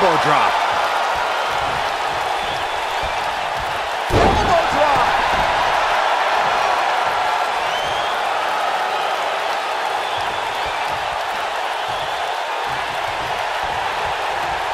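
A large crowd roars and cheers steadily in an echoing arena.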